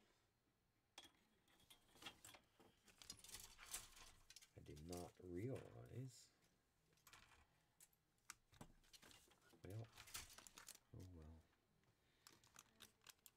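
Small tools clatter and tap on a workbench.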